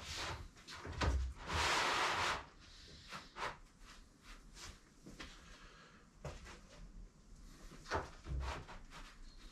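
Sheets of paper thump softly onto a pile.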